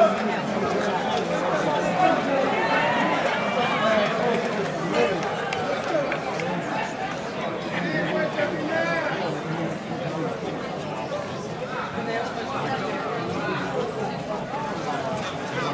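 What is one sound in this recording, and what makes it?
A large crowd outdoors chatters and shouts throughout.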